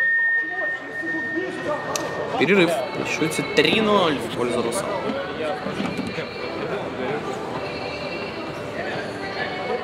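Men shout and call out to each other in a large echoing hall.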